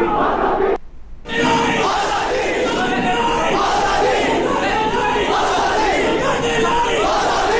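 A crowd of young men shouts slogans loudly and chaotically.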